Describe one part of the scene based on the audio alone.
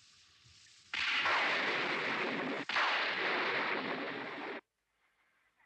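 Heavy rain pours down.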